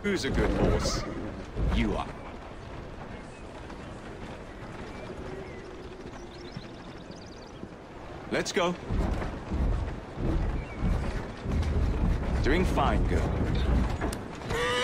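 Carriage wheels rattle over cobblestones.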